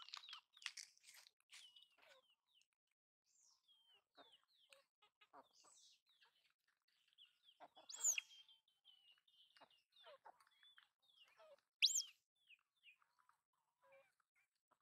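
Chickens and ducks cluck and chirp nearby outdoors.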